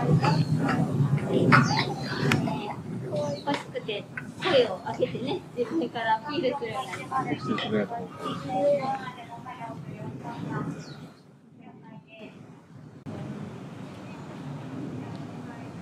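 A young chimpanzee grunts and whimpers close by.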